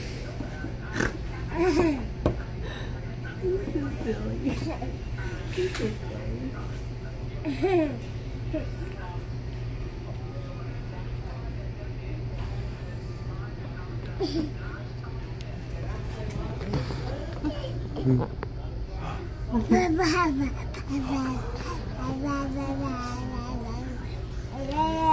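A baby giggles and squeals up close.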